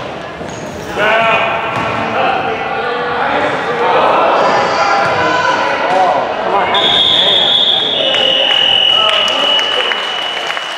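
Children shout and call out in a large echoing gym.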